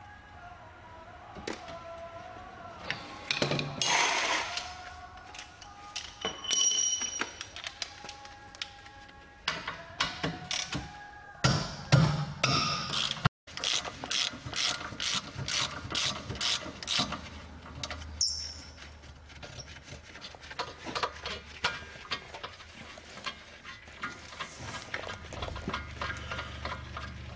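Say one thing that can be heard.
Metal parts clink and knock as hands work on a car's wheel brake.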